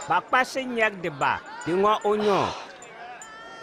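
A man cries out loudly in pain.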